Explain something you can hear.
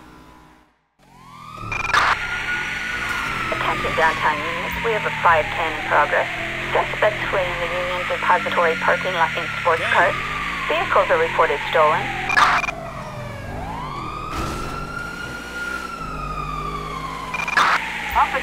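A police siren wails up and down close by.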